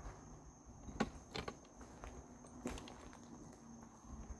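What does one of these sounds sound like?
Footsteps crunch over scattered debris.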